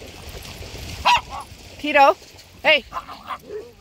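Dogs bark and yelp playfully close by.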